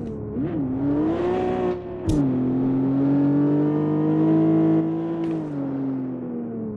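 A sports car engine revs steadily at high speed, with pitch shifting as gears change.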